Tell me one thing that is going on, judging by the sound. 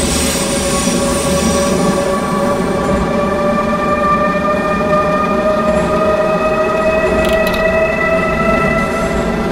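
Train wheels rumble on rails.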